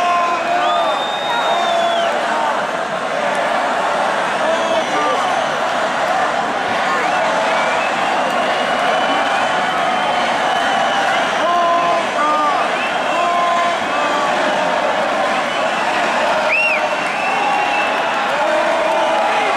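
Shrill whistles rise from a crowd now and then.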